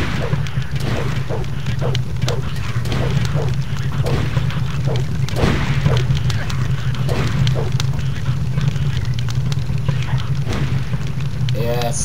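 Weapon blows strike in quick succession.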